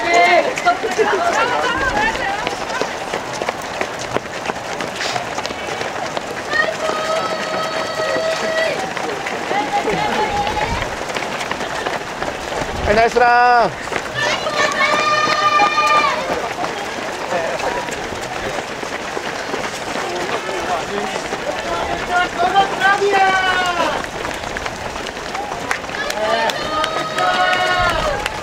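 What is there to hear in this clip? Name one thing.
A crowd of spectators cheers and shouts nearby.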